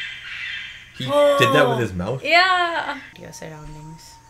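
A young woman laughs and speaks with animation close by.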